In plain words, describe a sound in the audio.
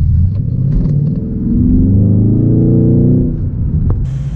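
A V8 car engine revs as the car accelerates.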